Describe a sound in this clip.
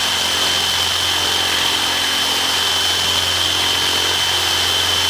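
A cordless drill whirs steadily as its bit grinds through metal.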